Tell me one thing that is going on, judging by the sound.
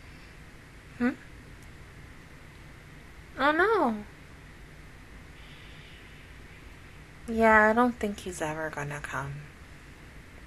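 A young woman squeals and laughs excitedly into a close microphone.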